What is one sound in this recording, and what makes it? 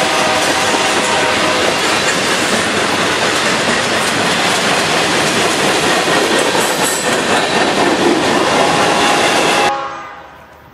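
A freight train rumbles and clatters past close by.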